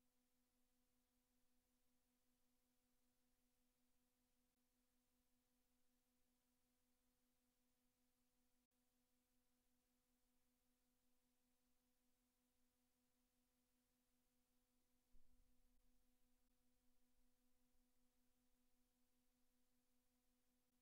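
A steady, low electronic tone hums throughout.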